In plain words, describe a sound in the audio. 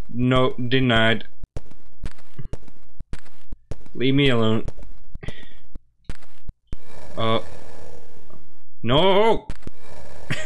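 A young man talks animatedly into a microphone.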